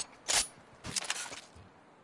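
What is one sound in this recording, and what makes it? A sniper rifle fires a sharp shot.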